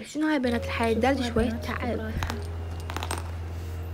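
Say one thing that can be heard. Small plastic game pieces tap against a board.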